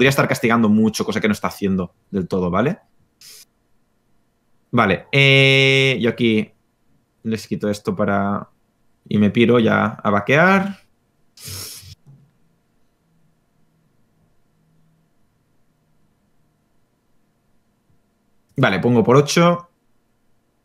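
A young man talks with animation into a microphone, close by, in short bursts.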